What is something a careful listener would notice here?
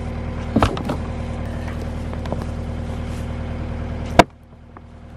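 Wooden planks knock and clatter against each other.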